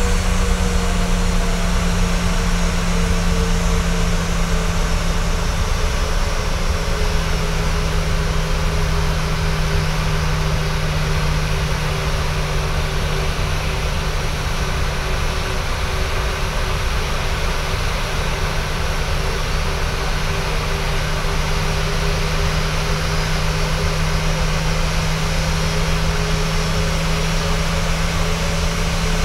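A jet airliner's engines hum and whine steadily as it taxis nearby.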